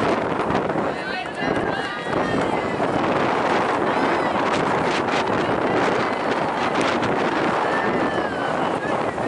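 Young women players shout and cheer on an open field.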